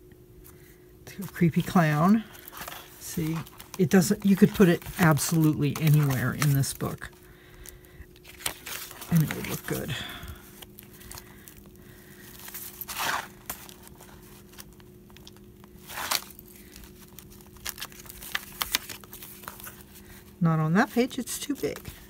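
Stiff paper rustles and slides as it is handled.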